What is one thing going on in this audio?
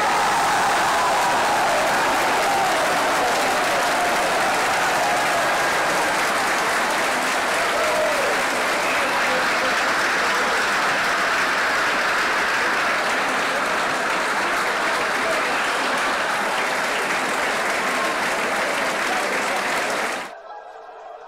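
A large stadium crowd roars and cheers loudly.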